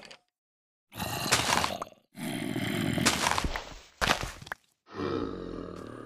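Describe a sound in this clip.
A shovel digs into dirt with soft, crunchy thuds.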